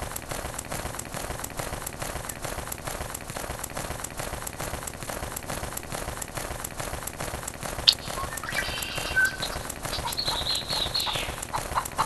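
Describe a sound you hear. Leathery wings flap in a quick, steady rhythm.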